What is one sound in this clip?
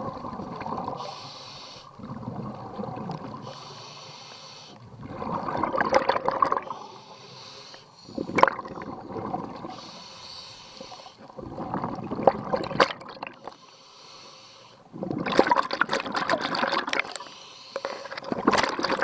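A diver breathes in through a regulator with a hissing rasp, in slow regular breaths.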